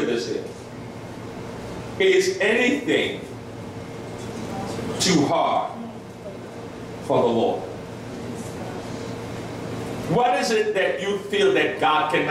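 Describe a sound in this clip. A man preaches with emotion in bursts into a microphone, heard through loudspeakers in an echoing room.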